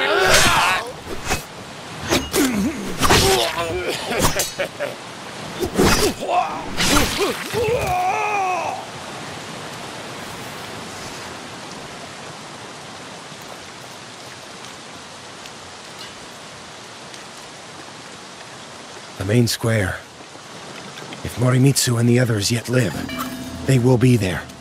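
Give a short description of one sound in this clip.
Water rushes steadily down a waterfall.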